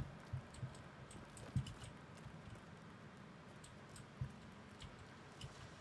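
Soft footsteps patter on rock.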